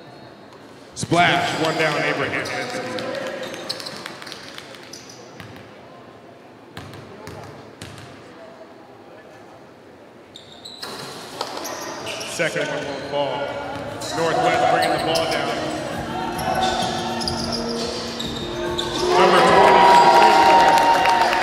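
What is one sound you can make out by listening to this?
A crowd cheers loudly in an echoing gym.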